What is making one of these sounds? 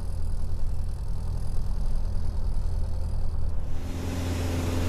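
A small propeller engine idles with a low, throbbing drone.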